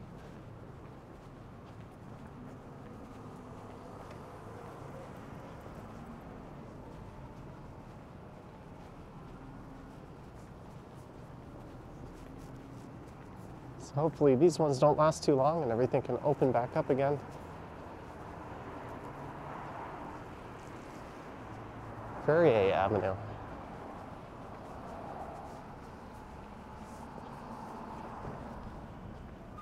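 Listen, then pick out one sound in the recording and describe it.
Road traffic hums steadily outdoors.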